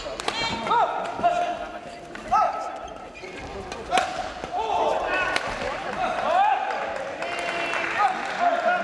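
Sneakers squeak sharply on a court floor in a large echoing hall.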